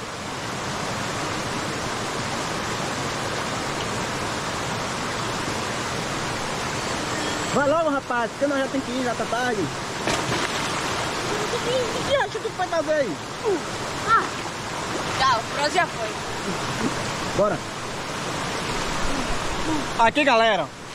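Water rushes and splashes steadily over rocks outdoors.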